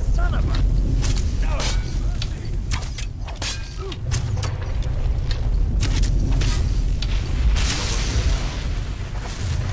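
Swords clash and strike sharply.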